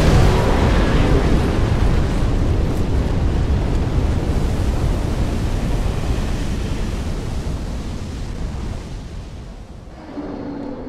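Flames roar loudly and then die down.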